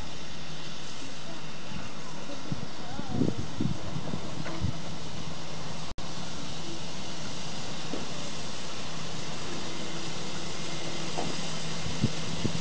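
A steam locomotive rumbles as it slowly approaches.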